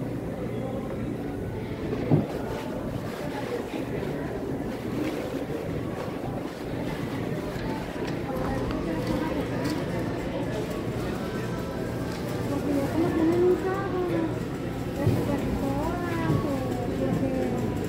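A refrigerated display case hums steadily.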